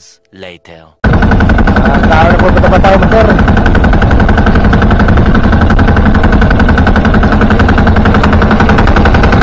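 A small outrigger boat's engine chugs as the boat runs over open sea.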